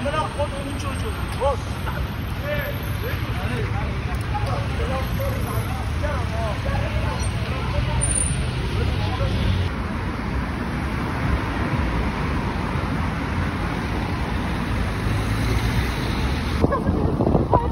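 Traffic hums steadily nearby.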